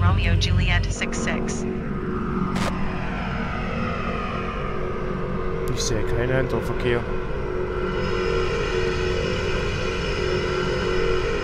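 A propeller plane's engine hums with a higher whine from outside.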